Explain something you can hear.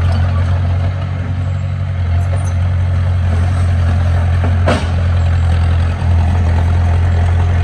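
A small bulldozer engine rumbles steadily nearby.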